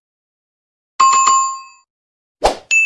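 A small bell dings.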